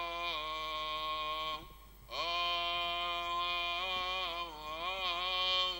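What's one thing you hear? A man chants in a long, sustained tone, echoing in a large hall.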